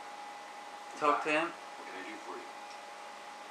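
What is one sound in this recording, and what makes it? A man speaks briefly through a television speaker.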